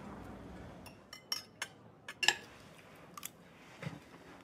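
A fork clinks on a plate.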